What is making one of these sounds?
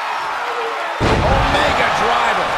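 A heavy body slams onto a wrestling ring mat with a thud.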